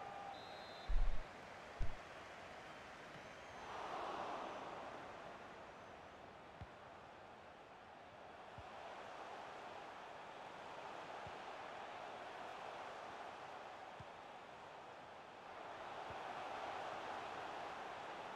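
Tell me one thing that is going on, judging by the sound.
A stadium crowd murmurs and cheers steadily, swelling now and then.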